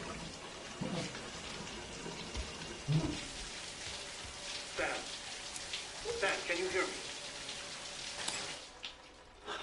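Water from a shower sprays and splashes steadily, then stops.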